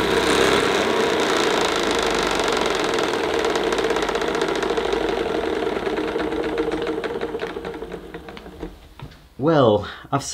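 An upright vacuum cleaner hums loudly as it runs over carpet, then winds down.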